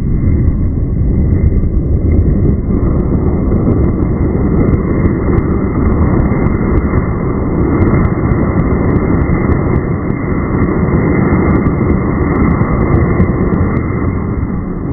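Sparks crackle and pop from a firework.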